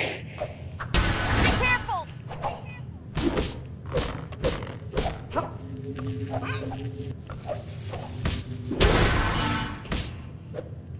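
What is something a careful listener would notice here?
A magic blast bursts with a crackling whoosh.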